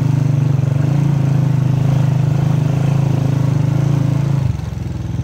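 A motorcycle engine chugs steadily and drops in pitch near the end.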